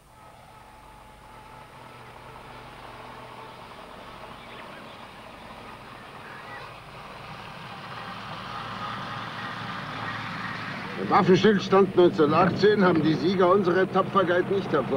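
A car engine hums as the car drives along a road.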